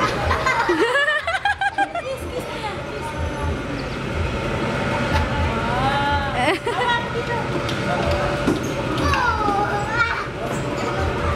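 A kiddie ride plays a tinny electronic tune.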